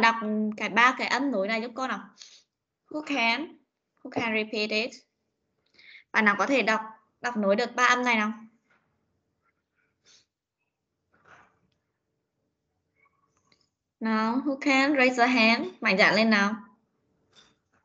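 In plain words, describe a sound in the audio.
A woman speaks clearly in short phrases over an online call.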